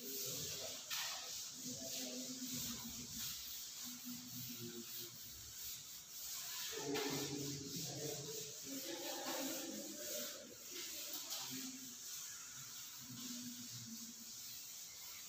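A cloth rubs across a chalkboard.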